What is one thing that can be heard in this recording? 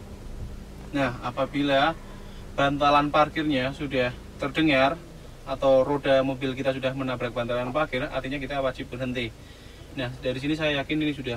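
A young man talks calmly and explains, close by.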